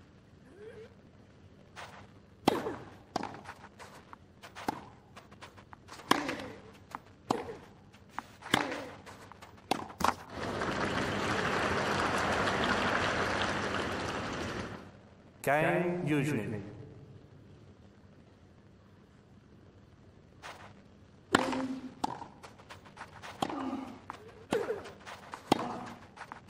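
Tennis balls are struck sharply with rackets, back and forth.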